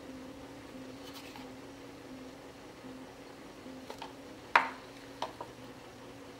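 A gloved hand taps and rubs a wet painted board.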